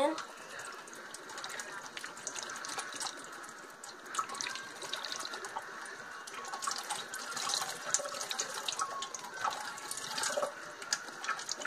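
Water swirls and gurgles inside a plastic bottle.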